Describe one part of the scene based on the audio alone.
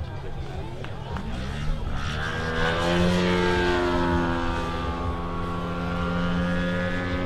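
A model airplane engine buzzes loudly as the plane zooms past close by.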